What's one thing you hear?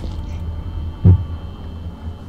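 A small object thuds onto a hard floor.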